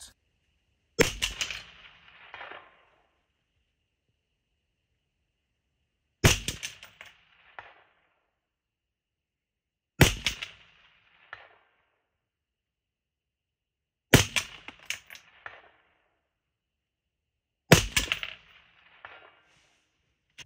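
A rifle fires sharp, loud shots outdoors, each echoing briefly.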